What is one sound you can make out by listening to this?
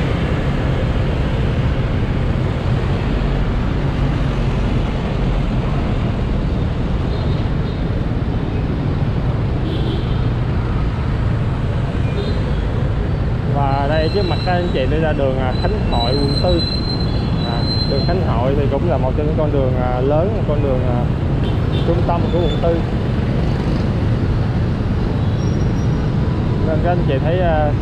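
Nearby motorbikes drone past in busy traffic.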